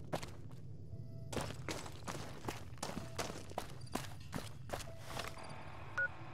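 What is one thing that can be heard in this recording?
Footsteps crunch on gravel at a steady walking pace.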